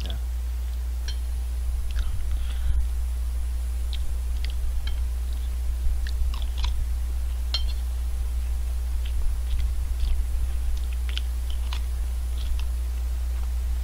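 A metal spoon clinks and scrapes against a plate.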